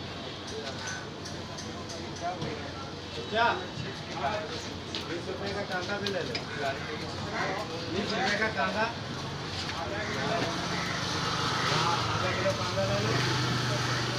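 Hands pat and slap flatbread dough.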